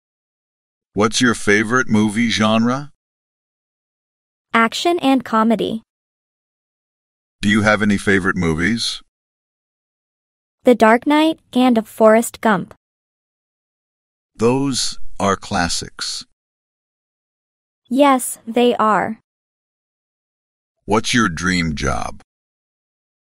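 A young woman asks questions in a calm, clear voice.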